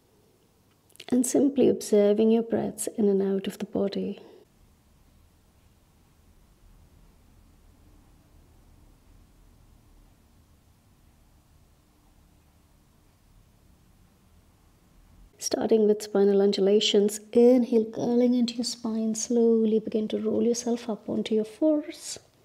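A young woman speaks calmly and gently, close to a microphone.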